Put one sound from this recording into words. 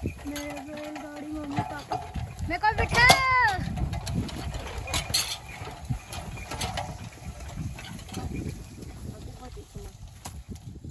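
A wooden cart rumbles and creaks over a bumpy dirt track.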